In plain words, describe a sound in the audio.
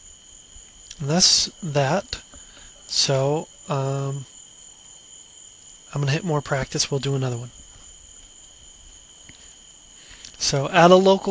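A young man speaks calmly and closely into a microphone, in short bursts.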